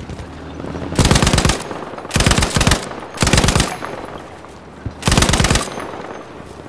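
A heavy machine gun fires in loud, rapid bursts.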